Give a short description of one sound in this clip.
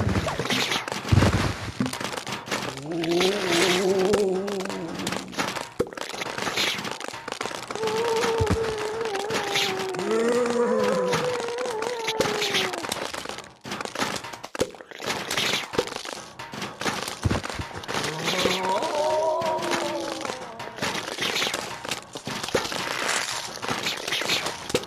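Peas splat in quick, repeated hits against cartoon zombies.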